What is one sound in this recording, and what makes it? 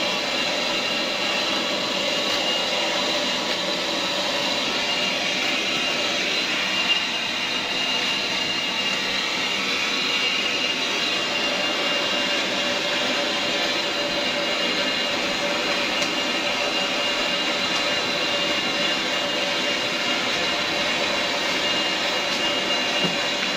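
Gas hisses steadily from a cylinder.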